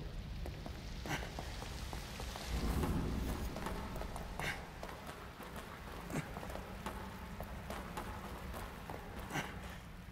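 Footsteps run on a hard stone floor.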